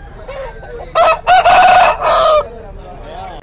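A rooster crows loudly and close by.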